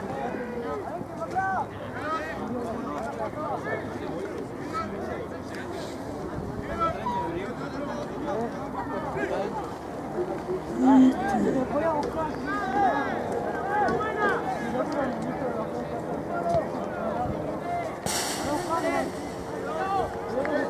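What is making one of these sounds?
Young players shout to each other across the field.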